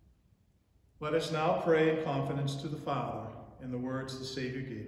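An older man speaks calmly and slowly into a microphone.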